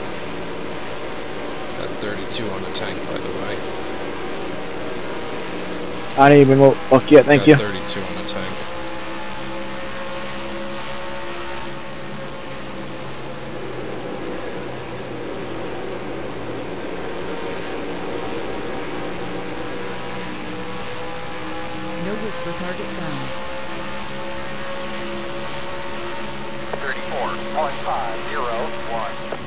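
A simulated stock car engine drones at high speed in top gear.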